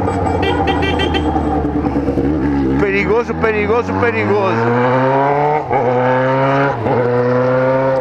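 A motorcycle engine rumbles and revs up, rising in pitch through the gears.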